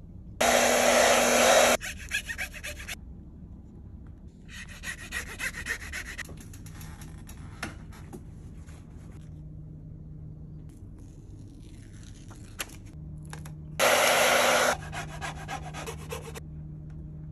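A plastic squeegee scrapes and rubs across a bike frame.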